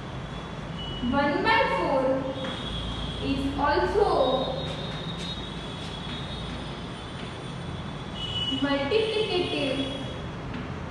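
A young woman speaks calmly and clearly, as if teaching.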